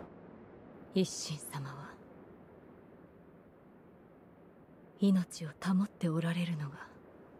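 A man speaks in a deep, grave voice.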